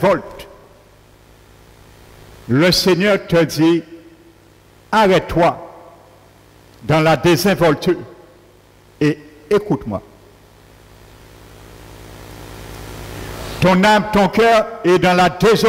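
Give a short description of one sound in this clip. An elderly man speaks slowly and earnestly through a headset microphone, in bursts with long pauses.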